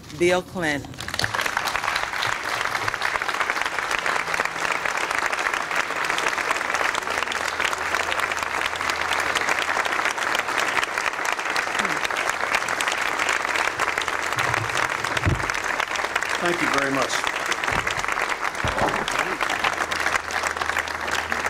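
A crowd applauds loudly and steadily.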